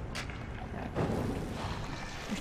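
Flames burst and roar.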